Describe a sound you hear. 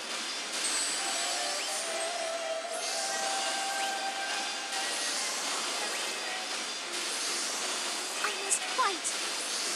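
Magical spell effects whoosh and shimmer steadily.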